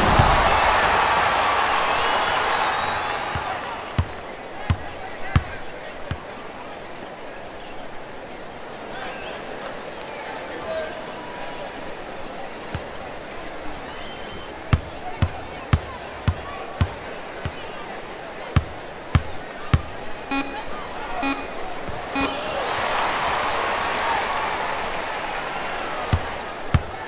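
A crowd cheers and roars in a large arena.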